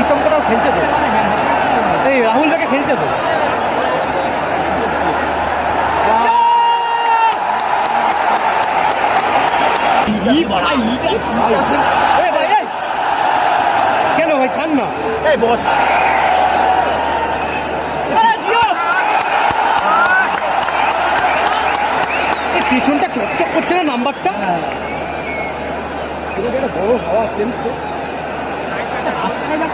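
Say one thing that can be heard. A large crowd roars and chants loudly and steadily.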